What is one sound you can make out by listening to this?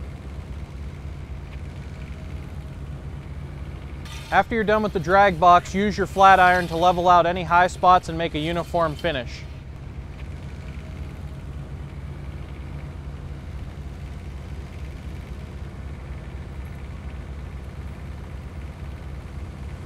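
An engine idles steadily nearby.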